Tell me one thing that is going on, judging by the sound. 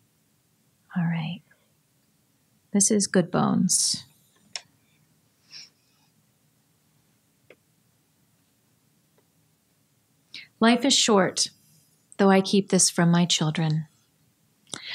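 A woman reads aloud calmly into a microphone, with long pauses.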